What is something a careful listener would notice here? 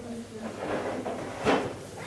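A hand bumps a wooden lamp on a wooden cabinet top.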